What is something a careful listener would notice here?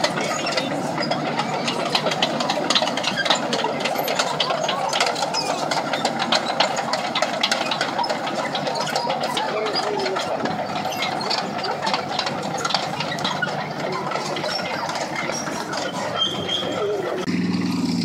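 Tank tracks clank and rattle on pavement.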